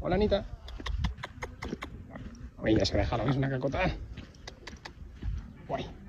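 A pig snuffles and grunts while rooting in the dirt.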